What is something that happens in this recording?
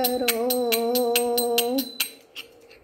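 An elderly woman sings a long held note close by.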